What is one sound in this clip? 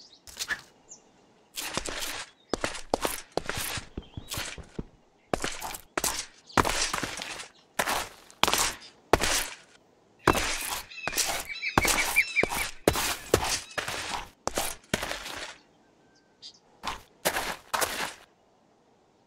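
Blocks crunch and thud as they are dug out and placed in quick bursts.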